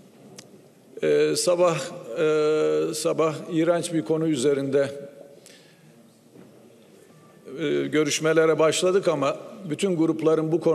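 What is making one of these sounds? A middle-aged man speaks forcefully into a microphone in a large echoing hall.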